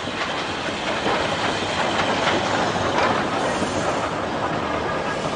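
A steam locomotive puffs in rhythmic chuffs as it moves along.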